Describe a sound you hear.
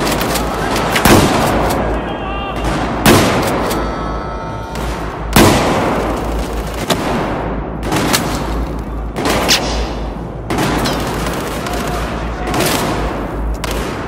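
Gunshots fire in loud, sharp bursts in an echoing space.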